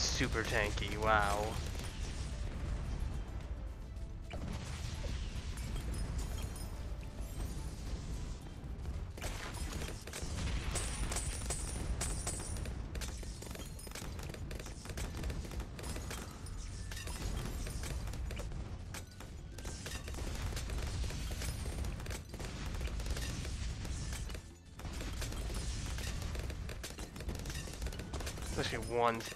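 Small explosions boom in quick succession.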